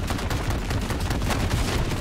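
A helicopter's rotor thumps nearby.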